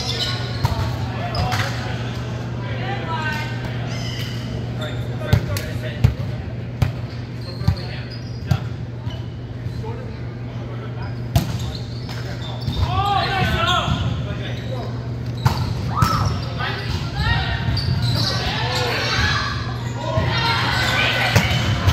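Sneakers squeak on the wooden floor.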